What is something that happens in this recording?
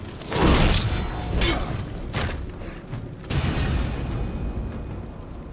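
Metal blades clash and ring loudly.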